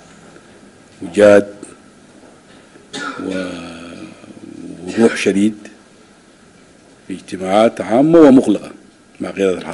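A man speaks calmly into microphones, with pauses between phrases.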